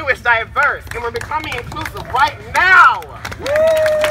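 A man speaks loudly through a megaphone, outdoors.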